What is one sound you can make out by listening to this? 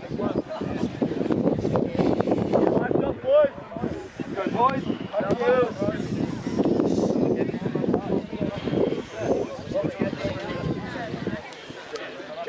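A group of teenage boys chatter and call out nearby outdoors.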